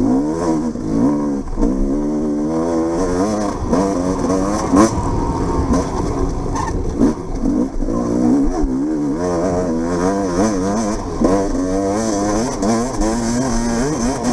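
A motorcycle engine revs up and down continuously, close by.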